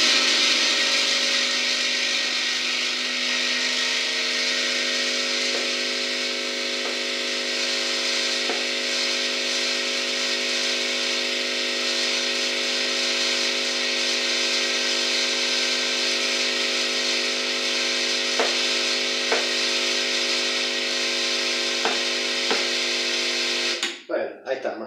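An espresso machine pump hums and buzzes loudly and steadily, then stops.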